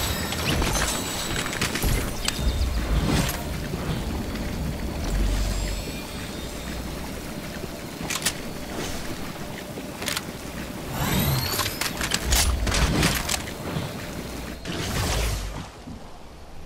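Magical shimmering and whooshing effects sound in a video game.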